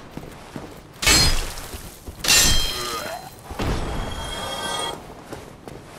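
A sword clashes against metal with a loud ringing strike.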